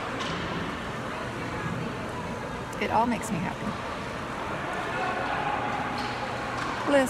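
A steady murmur of background chatter echoes in a large hall.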